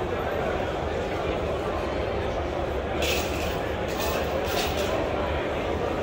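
A crowd of people chatters indoors.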